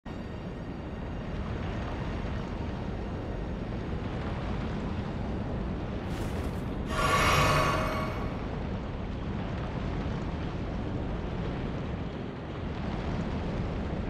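Wind roars steadily and low.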